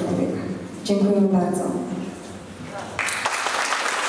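A woman speaks through a loudspeaker in a large echoing hall.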